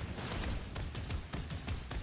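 Fire whooshes in a blazing burst.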